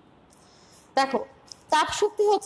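A woman speaks loudly and clearly nearby.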